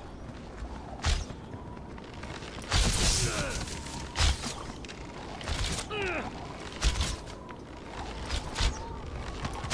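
A bow twangs as arrows are loosed again and again.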